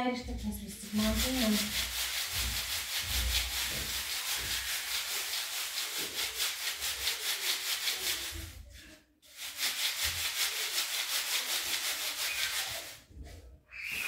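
Dry pasta grains rattle and hiss rhythmically in a shaken sieve.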